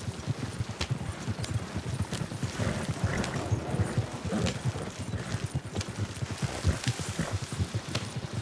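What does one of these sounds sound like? A wooden wagon creaks and rattles.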